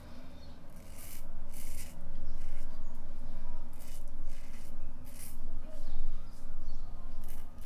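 A razor scrapes through stubble in short strokes, close by.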